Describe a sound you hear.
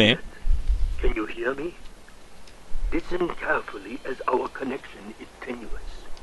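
A young woman speaks softly into a phone.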